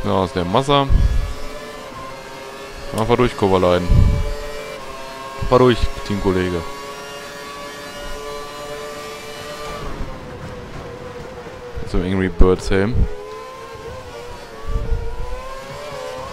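A racing car engine whines at high revs, rising through the gears and dropping as it brakes.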